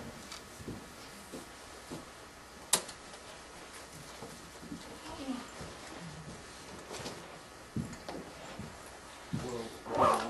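Footsteps cross a room.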